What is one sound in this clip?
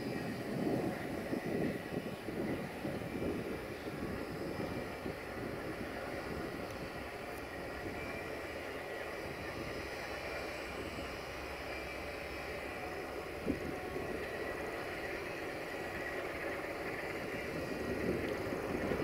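A diesel locomotive engine rumbles steadily as it approaches slowly.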